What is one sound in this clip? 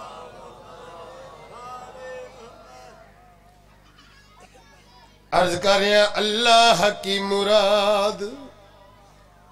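A middle-aged man recites through a microphone, at first softly and then in a loud, wavering chant.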